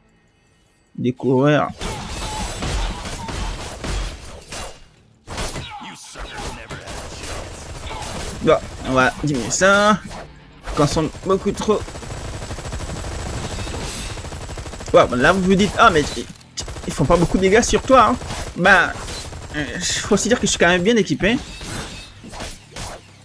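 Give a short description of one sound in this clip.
Gunshots and blows crack in a fierce fight.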